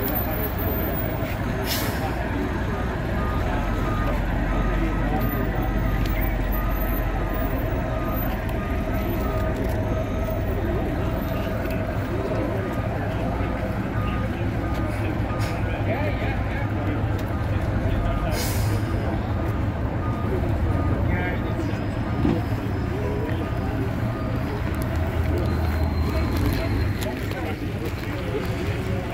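A bus engine idles with a steady low rumble nearby.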